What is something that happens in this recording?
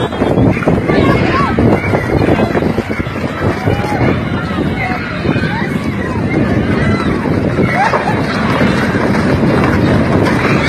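Plastic chairs clatter and scrape as they tumble.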